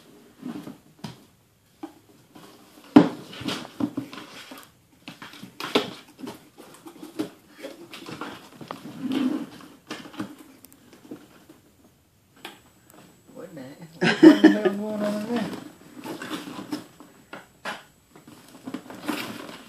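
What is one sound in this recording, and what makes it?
Cardboard rustles and crinkles as a box is handled.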